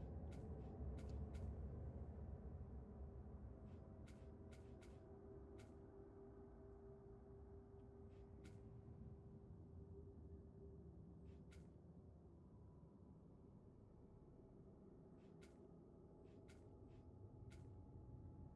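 Short, soft menu clicks tick now and then.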